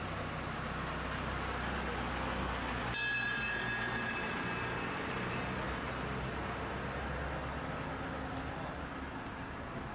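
A tourist road train's engine rumbles as it pulls away.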